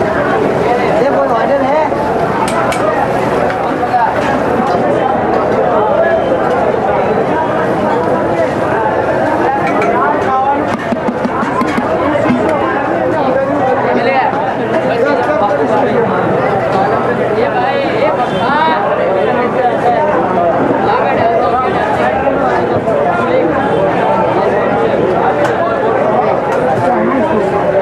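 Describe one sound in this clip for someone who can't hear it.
A crowd of people chatters loudly all around.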